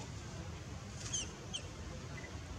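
A baby monkey squeaks softly.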